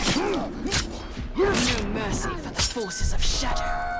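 A sword slashes and strikes a creature with a thud.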